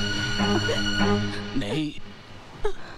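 A woman sobs softly.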